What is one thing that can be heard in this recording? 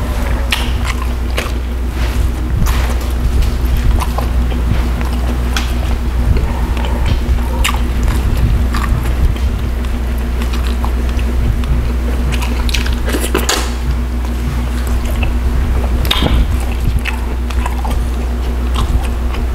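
Fingers pull and tear apart soft cooked fish with wet squelches.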